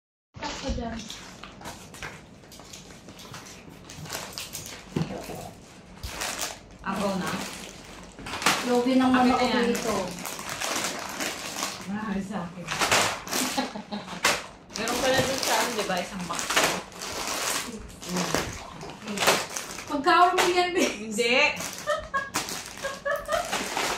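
Plastic snack packets crinkle and rustle as they are handled.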